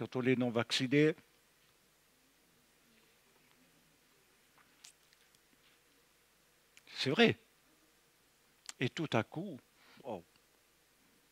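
An elderly man speaks through a microphone, with pauses between phrases.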